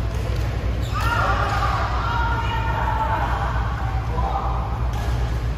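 Young women call out briefly in a large echoing hall.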